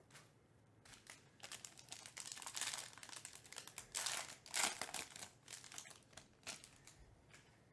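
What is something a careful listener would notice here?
A foil card wrapper crinkles and tears as it is torn open.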